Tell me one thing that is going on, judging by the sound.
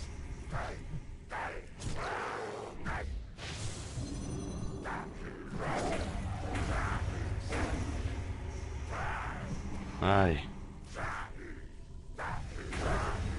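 Sword strikes and spell effects clash in a game fight.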